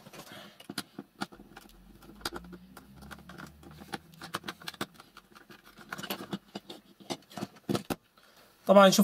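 Plastic casing clicks and creaks.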